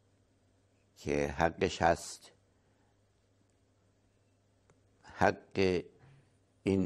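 An elderly man speaks calmly and close to a microphone, with pauses.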